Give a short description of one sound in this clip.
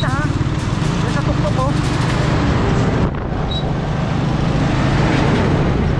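A truck's engine rumbles past.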